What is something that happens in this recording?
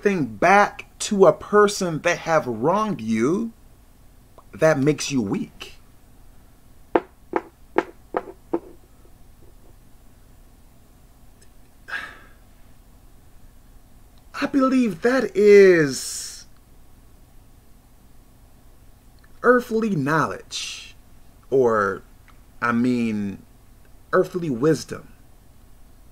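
A man talks with animation close to a microphone, pausing often.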